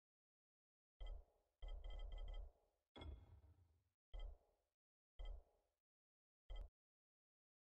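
Short menu beeps click now and then.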